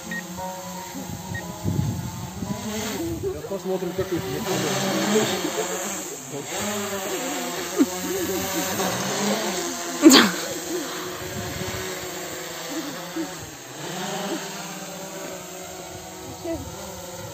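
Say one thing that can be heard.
A drone's propellers whine steadily overhead.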